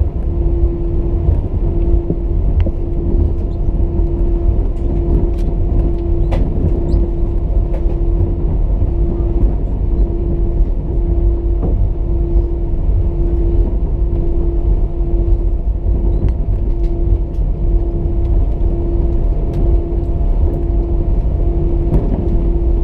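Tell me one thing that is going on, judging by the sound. A jet engine hums low and steady from inside a plane cabin.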